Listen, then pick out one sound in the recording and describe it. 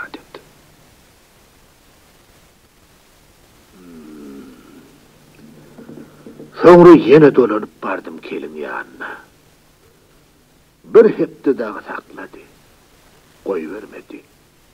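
A long-necked lute is plucked and strummed.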